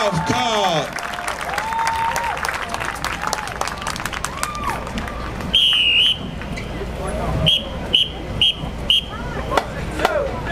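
A crowd cheers and yells outdoors.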